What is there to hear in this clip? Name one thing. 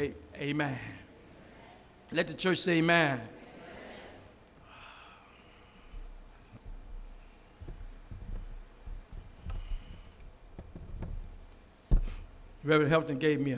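A man speaks slowly into a microphone, heard through loudspeakers in an echoing room.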